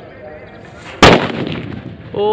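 A firecracker explodes with a loud bang outdoors.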